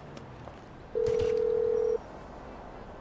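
A phone beeps steadily.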